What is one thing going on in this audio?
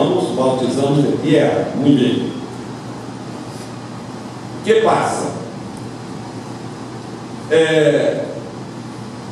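An older man speaks with animation into a microphone, over loudspeakers in an echoing hall.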